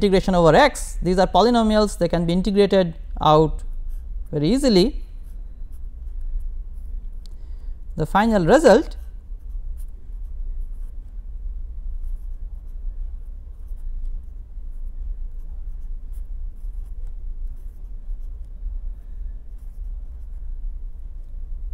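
A pen scratches faintly on paper.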